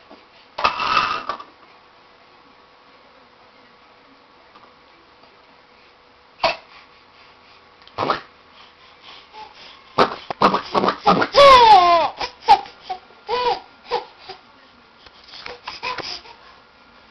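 A young woman talks playfully to a baby, close by.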